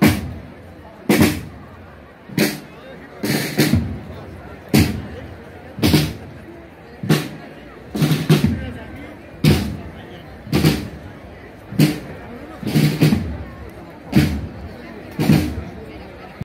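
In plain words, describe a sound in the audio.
A brass band plays a slow, heavy marching beat outdoors.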